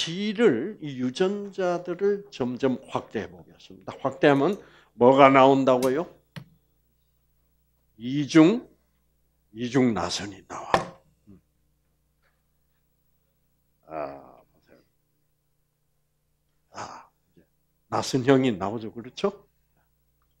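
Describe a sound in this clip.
An elderly man lectures calmly through a headset microphone, in bursts with pauses.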